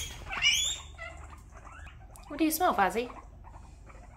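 Guinea pigs squeal loudly in short high wheeks.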